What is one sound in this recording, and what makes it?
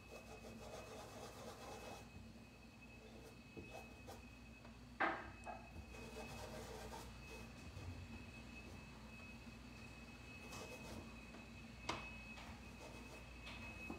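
A paintbrush softly brushes across canvas.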